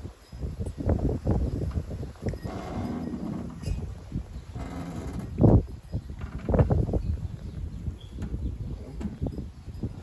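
Wind gusts blow outdoors, rumbling and buffeting.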